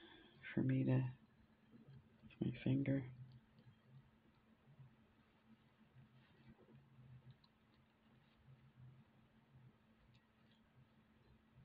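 Small beads click softly against one another.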